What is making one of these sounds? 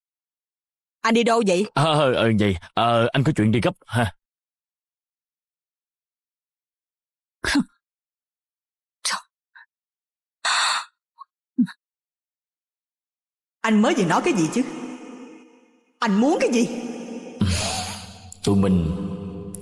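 A woman speaks urgently, close by.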